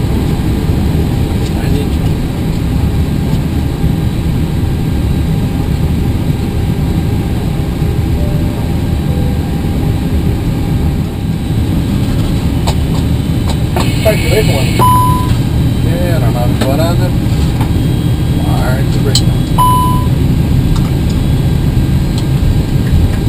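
An aircraft engine hums with a steady low roar.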